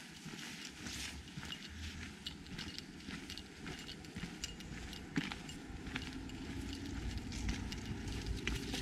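Footsteps crunch on dry leaves and dirt along a trail.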